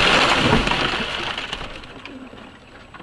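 A loud blast roars and slowly dies away.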